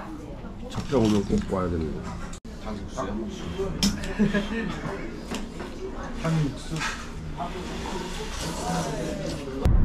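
Spoons and chopsticks clink against bowls.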